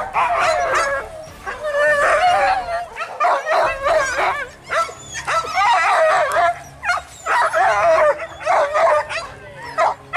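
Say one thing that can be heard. Several dogs bark and yelp excitedly outdoors.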